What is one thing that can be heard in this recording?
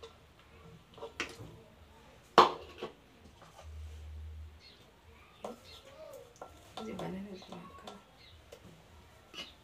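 Fruit pieces drop and thud into a glass jug.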